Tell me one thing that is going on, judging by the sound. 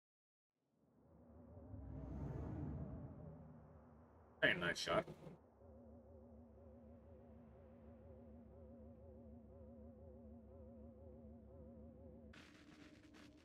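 A flying saucer hums steadily.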